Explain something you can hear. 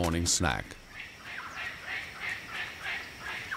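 A bird squawks in short repeated calls.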